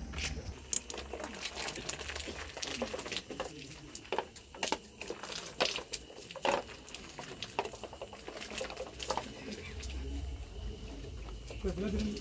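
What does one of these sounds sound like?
A crowd murmurs quietly nearby.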